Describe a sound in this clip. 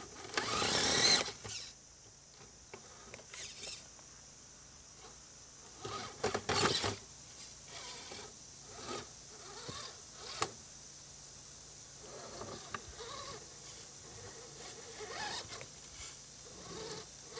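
A small electric motor whirs as a toy truck crawls over rocks.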